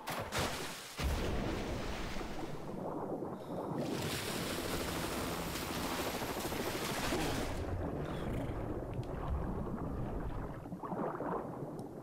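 Water rushes and bubbles loudly.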